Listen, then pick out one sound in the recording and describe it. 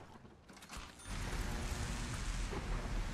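A fire roars and crackles close by.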